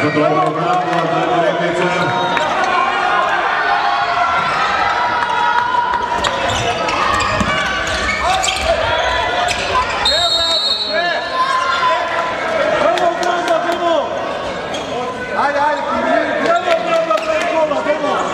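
Sports shoes squeak on the floor.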